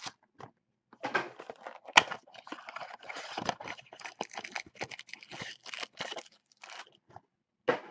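Foil card packs rustle and crinkle as they are handled.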